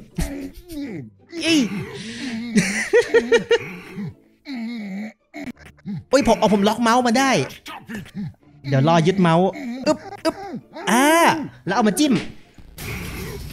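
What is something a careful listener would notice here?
A man talks with animation into a microphone, close up.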